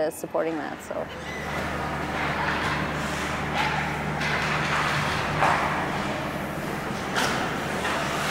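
Hockey sticks scrape and clack on ice.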